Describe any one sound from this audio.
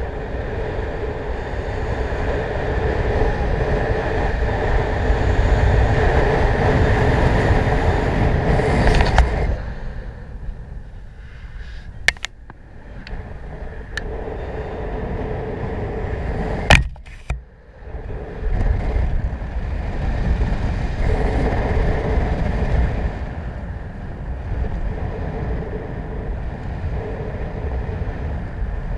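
Wind rushes and buffets loudly past a paraglider in flight.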